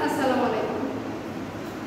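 A woman speaks briefly and calmly, close by.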